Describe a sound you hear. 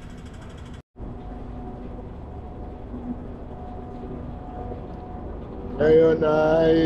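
An escalator hums steadily.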